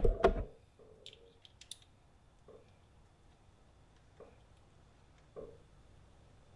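Small metal parts click against an engine.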